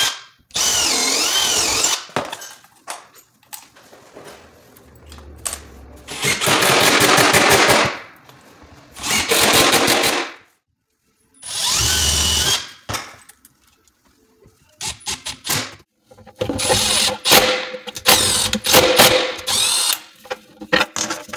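A cordless drill whirs in short, loud bursts.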